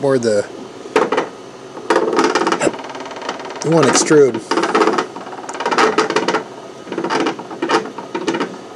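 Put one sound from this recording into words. A plastic cover clicks and rattles as a hand handles it.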